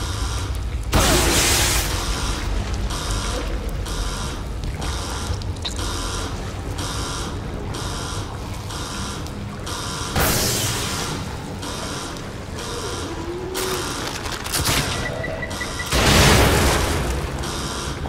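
A heavy gun fires loud blasts that echo.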